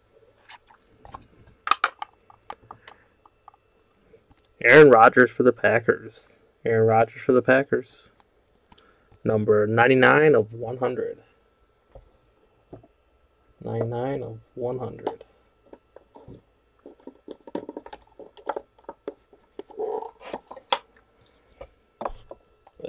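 Cards rustle and click as hands pull them from a pack and handle them.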